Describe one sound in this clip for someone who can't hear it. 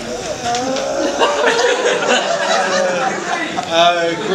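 A crowd of guests laughs.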